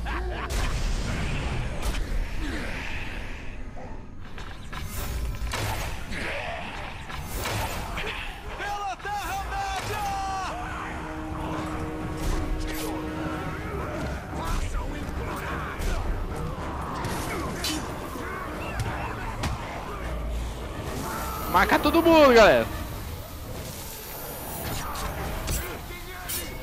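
Creatures snarl and grunt as they fight.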